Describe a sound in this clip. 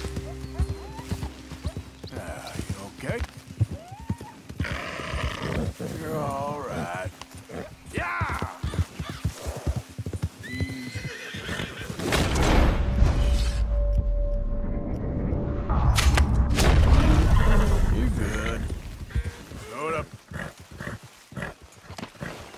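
A horse gallops through undergrowth, hooves thudding on soft ground.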